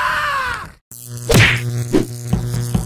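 A magical energy blast zaps and whooshes.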